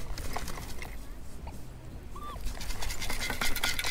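A metal sand scoop scrapes and sifts through sand.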